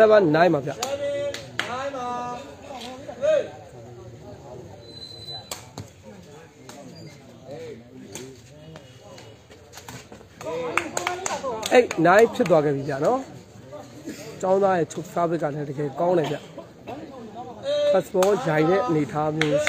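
A crowd of spectators chatters and calls out nearby outdoors.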